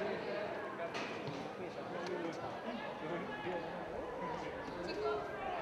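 A crowd murmurs and calls out across a large open stadium.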